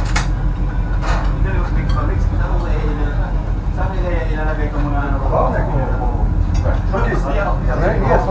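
Several men talk at once, close by.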